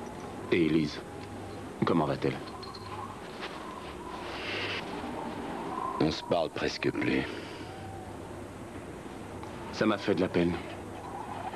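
A man speaks in short, calm phrases up close.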